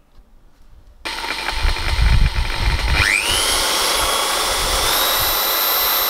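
An electric drill whirs and bores into wood, its pitch rising as it speeds up.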